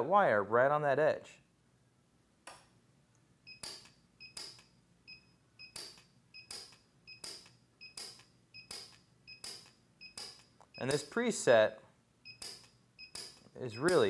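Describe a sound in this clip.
A soldering iron sizzles faintly against metal.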